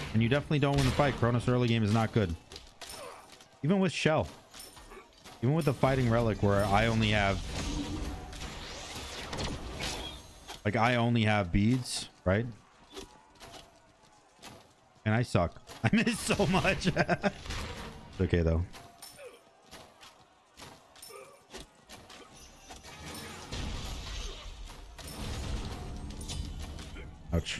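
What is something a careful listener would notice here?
Fighting sounds and magic effects from a video game clash and whoosh.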